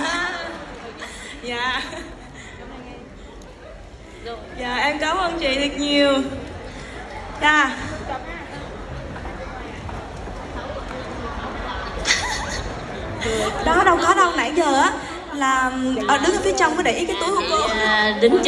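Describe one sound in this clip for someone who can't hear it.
A young woman speaks into a microphone with emotion, heard through loudspeakers in a large hall.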